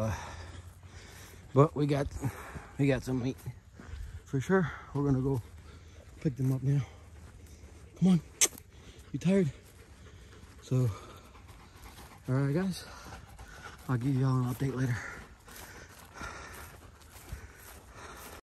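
A dog's paws crunch softly over hail-covered ground.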